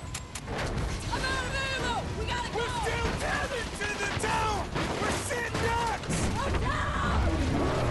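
A woman shouts urgently.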